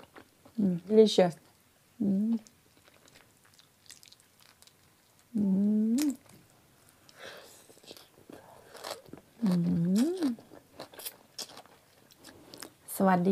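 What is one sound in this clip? A young woman hums and makes pleased sounds close to a microphone.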